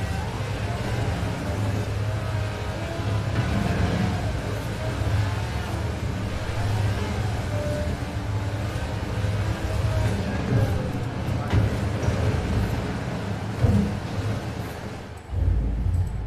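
A sports car engine roars at high revs.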